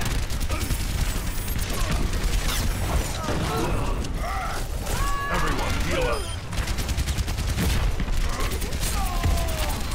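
Energy blasts zap in quick bursts.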